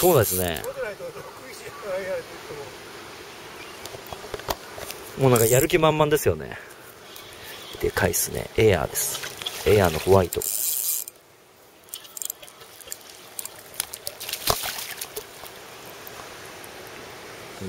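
A fishing reel winds with a soft whirr.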